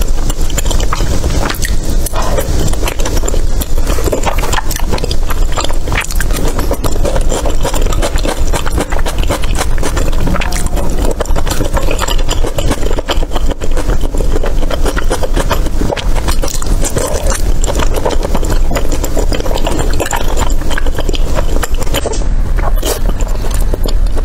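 A person chews soft, sticky food close up, with wet smacking sounds.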